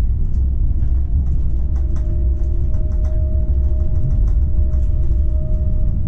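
Tram wheels click and clack over rail joints.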